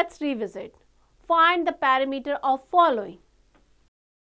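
A young woman speaks clearly and with animation into a close microphone.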